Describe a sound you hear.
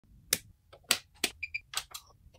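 A switch clicks on.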